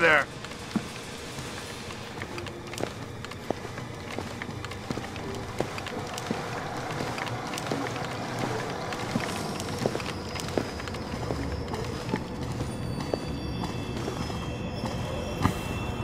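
Soft footsteps creep slowly across a hard floor.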